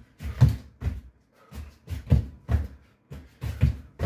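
A punching bag thuds under knee strikes.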